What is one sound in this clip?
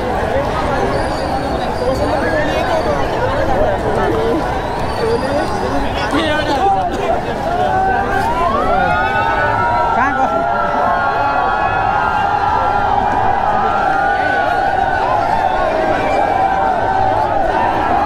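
A large crowd of young men and women chatters and shouts nearby outdoors.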